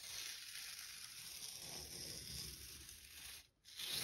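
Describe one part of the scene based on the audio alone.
Paper rustles and slides as hands handle a drawing sheet.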